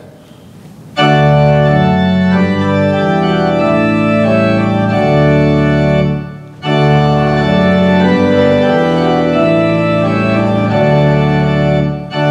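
A pipe organ plays sustained chords.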